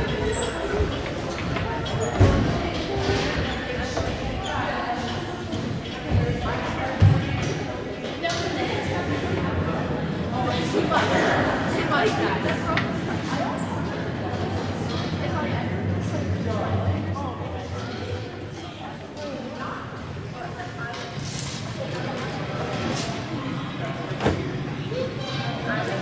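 A crowd of people chatter in a large echoing gym.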